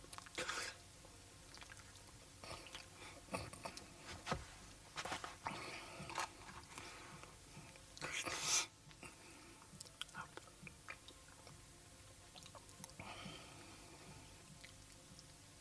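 An elderly man munches on food.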